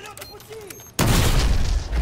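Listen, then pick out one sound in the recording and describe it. A door bursts open with a loud bang.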